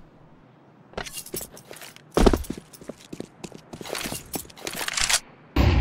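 A knife swishes through the air.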